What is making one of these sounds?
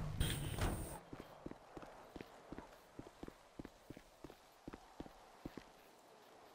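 Quick footsteps run on hard ground.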